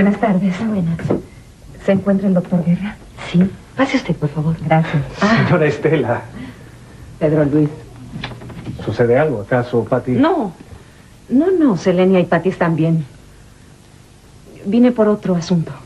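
A woman talks with animation.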